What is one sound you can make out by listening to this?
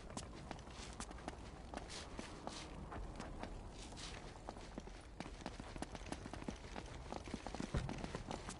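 Footsteps tap on stone tiles.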